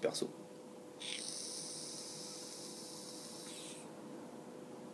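A man draws on a vape with a faint hiss.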